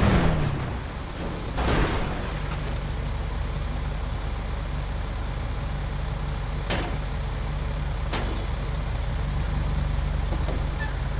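A heavy truck engine idles with a low rumble.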